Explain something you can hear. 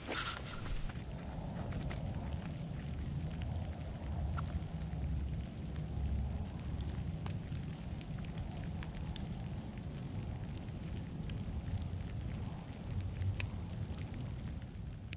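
Wind rustles through trees outdoors.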